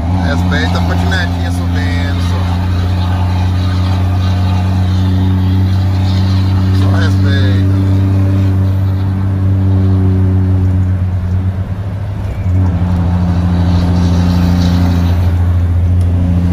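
A heavy diesel engine drones steadily up close, dipping briefly before pulling again.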